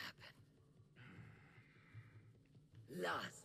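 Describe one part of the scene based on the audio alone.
A man breathes in deeply.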